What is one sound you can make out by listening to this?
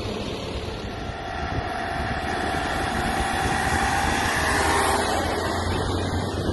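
A van drives past close by on the road.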